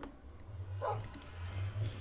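A furnace fire crackles softly.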